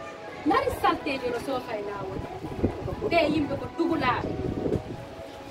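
A young woman speaks into a microphone close by.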